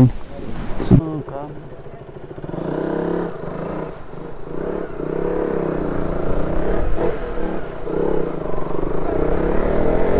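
A motorcycle engine hums and rises as the bike rides off.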